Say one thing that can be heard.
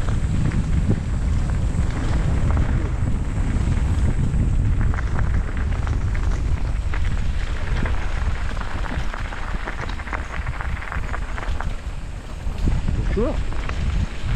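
Bicycle tyres crunch and rattle over gravel.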